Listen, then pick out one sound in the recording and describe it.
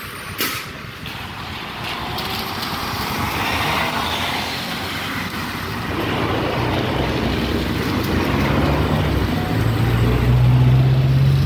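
Cars pass by with tyres hissing on a wet road.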